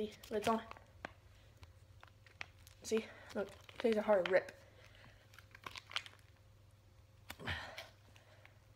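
A plastic wrapper crinkles and rustles in hands.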